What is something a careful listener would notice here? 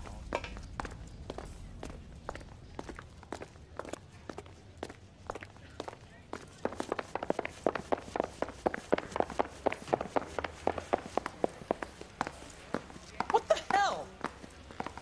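Footsteps of two men walk on a hard floor and then climb wooden stairs.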